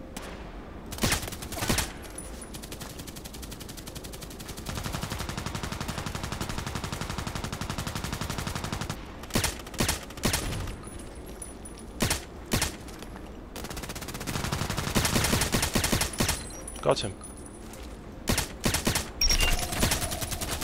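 A rifle fires in short, loud bursts.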